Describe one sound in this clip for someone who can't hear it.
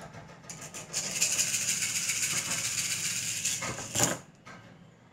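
A middle-aged woman rubs her hands together briskly.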